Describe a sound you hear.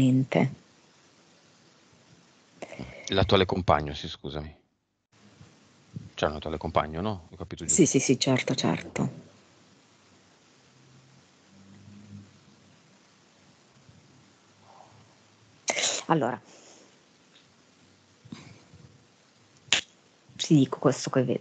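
A man talks calmly into a headset microphone.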